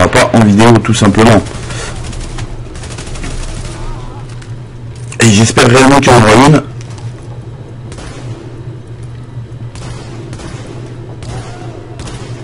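Rifle shots fire in short bursts.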